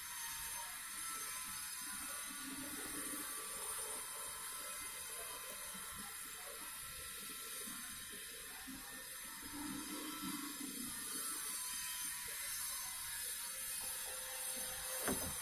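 Hands knock and click on a sliding door's overhead fitting.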